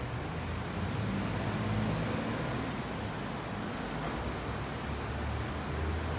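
A truck engine rumbles nearby.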